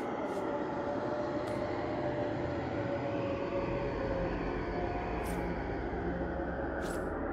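Soft interface clicks sound as menu items are selected.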